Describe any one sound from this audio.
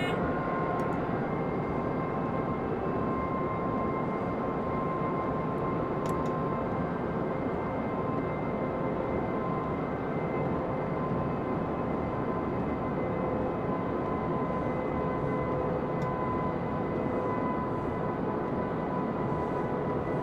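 An electric train hums and rumbles steadily along the tracks.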